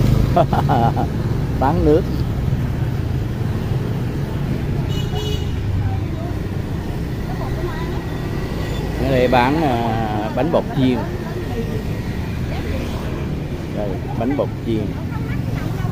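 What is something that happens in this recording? A woman talks casually nearby.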